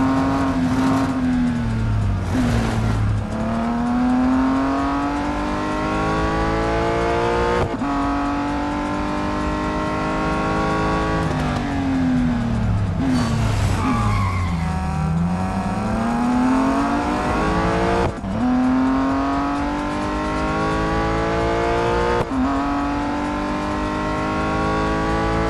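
A racing car engine revs hard, rising in pitch through each gear and dropping at each shift.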